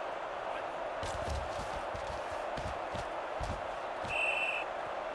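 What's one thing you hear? Football players collide with dull thumps.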